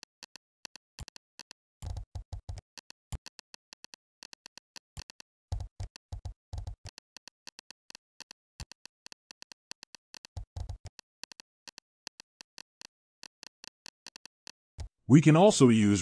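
Keys clack on a keyboard in quick bursts of typing.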